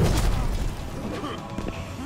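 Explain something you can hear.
Flames whoosh and crackle.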